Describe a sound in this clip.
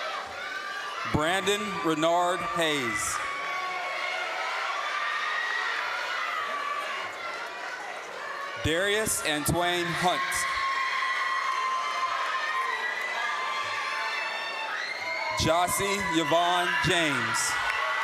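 An audience cheers and claps in a large hall.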